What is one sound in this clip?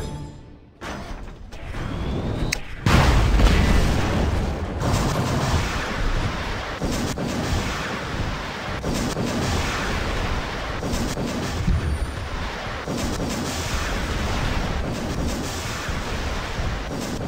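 Heavy metal footsteps of a giant robot thud and clank as it walks.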